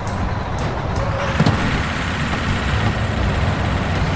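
A truck knocks into a barrier with a thud.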